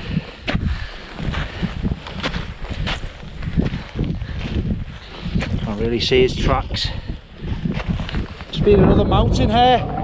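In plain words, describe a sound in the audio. Footsteps crunch on frozen snow.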